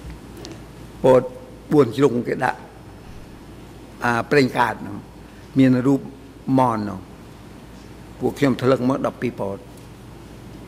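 An elderly man speaks with animation into a microphone, in short bursts.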